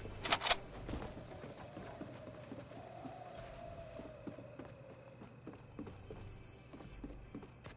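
Footsteps thud on hard floor and stairs in a steady walking rhythm.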